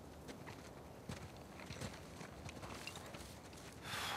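Footsteps crunch on the ground as men walk off.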